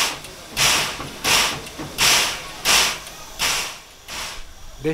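A steam locomotive chuffs in rapid, rhythmic puffs close by.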